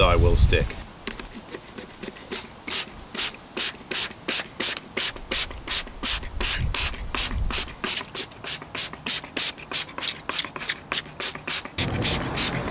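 A spray bottle squirts in quick, repeated bursts.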